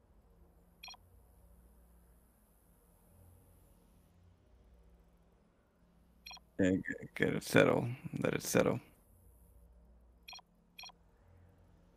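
A short electronic chime sounds several times.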